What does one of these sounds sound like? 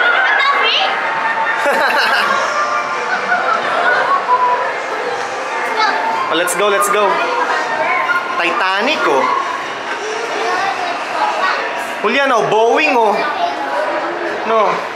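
Young children talk and call out excitedly nearby.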